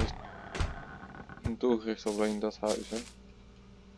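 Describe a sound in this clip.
A wooden door swings open.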